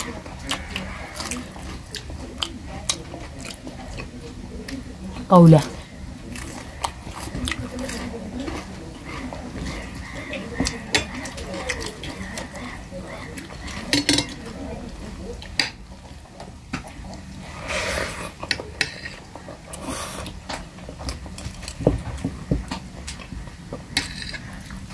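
A young man chews food with lips smacking, close to the microphone.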